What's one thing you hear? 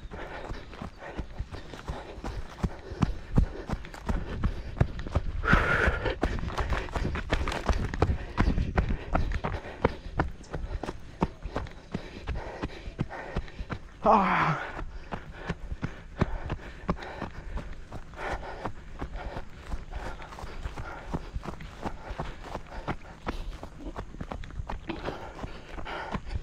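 Footsteps run quickly over dry dirt and crunch on dry grass.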